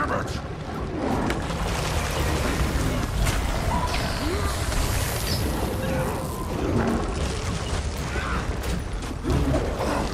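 Weapons clash and strike repeatedly in a fight with a large ice beast.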